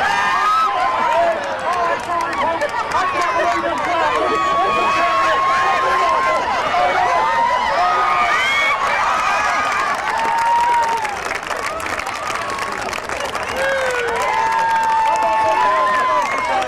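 A crowd outdoors cheers and chatters loudly.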